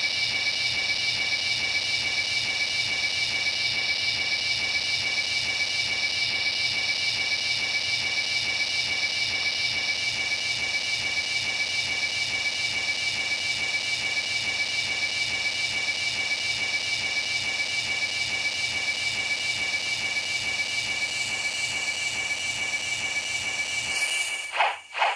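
A magic energy blast crackles and hums steadily.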